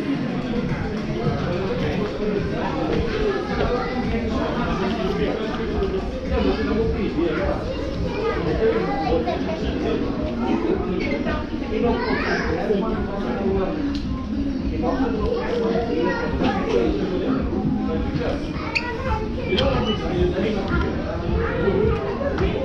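A crowd of adults chatters nearby indoors.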